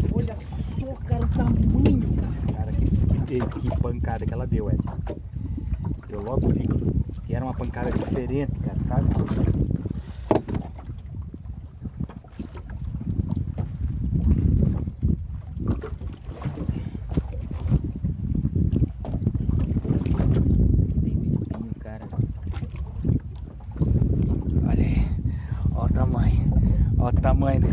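Wind rumbles and buffets outdoors on open water.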